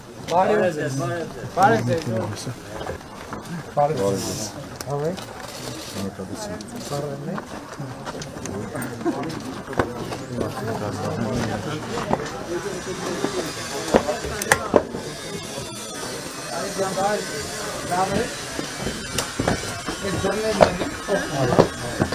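Men talk among themselves nearby, outdoors.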